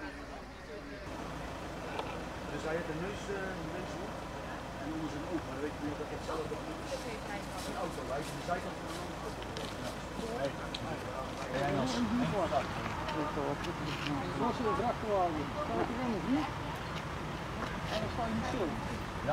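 Several men talk nearby in low voices.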